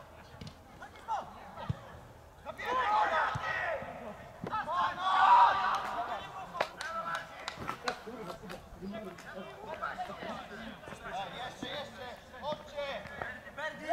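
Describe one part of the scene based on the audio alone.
Football players shout to each other across an open field.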